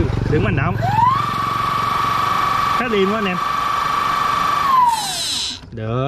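An electric motor whines, rising in pitch, holding steady, then winding down.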